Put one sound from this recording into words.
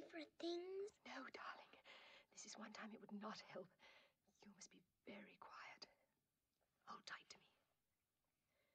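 A woman speaks softly and urgently, close by.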